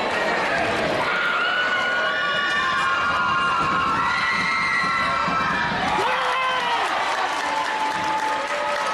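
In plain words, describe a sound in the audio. A brass band plays loud sustained notes.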